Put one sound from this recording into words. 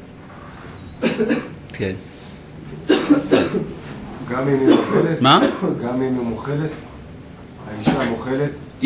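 An elderly man speaks calmly and close to a microphone, in short phrases with pauses.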